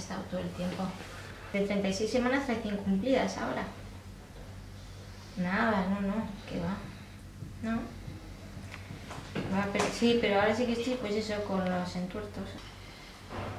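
A young woman talks on a phone close by, calmly and with animation.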